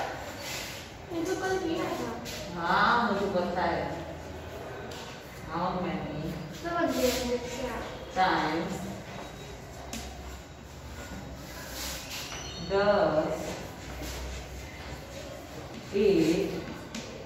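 A young woman speaks calmly and clearly, as if teaching, close by.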